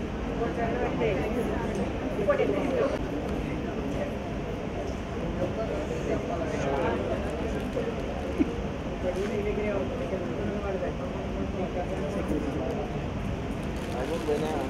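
A crowd of women and men chatter nearby in a busy room.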